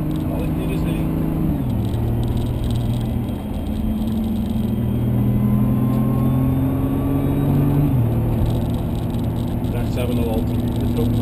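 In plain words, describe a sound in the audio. A car engine roars steadily, rising in pitch and dropping sharply with each gear change.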